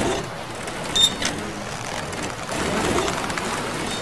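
A metal grate clanks open.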